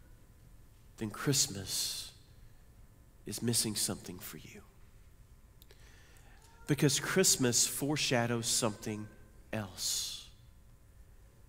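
A middle-aged man speaks calmly through a microphone, in bursts with pauses.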